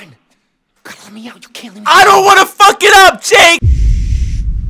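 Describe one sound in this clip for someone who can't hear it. A man pleads desperately and quickly.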